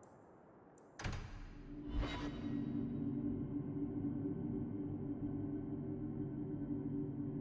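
A low magical hum drones steadily.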